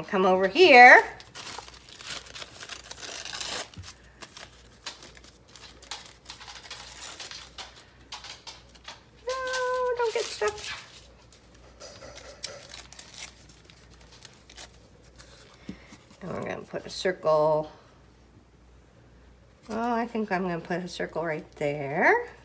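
Thin paper rustles and crinkles.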